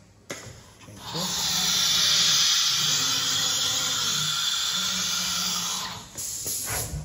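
A router spindle whines loudly as it cuts.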